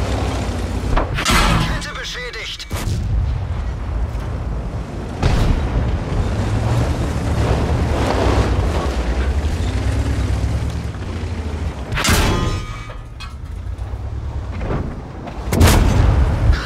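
A tank cannon fires with loud booming blasts.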